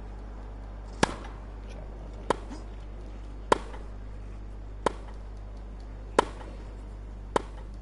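Tennis balls are struck back and forth with sharp thwacks at a steady pace.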